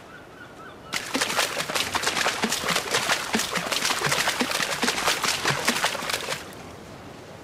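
Water splashes steadily as a large animal wades through shallow water.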